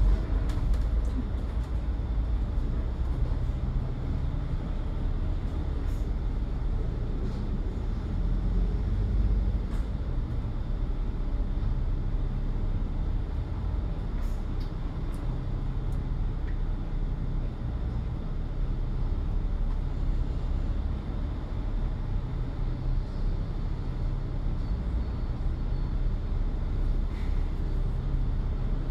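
Traffic hums on a road outdoors.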